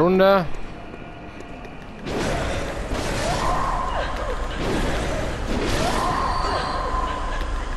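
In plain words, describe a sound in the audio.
A blade swishes through the air again and again.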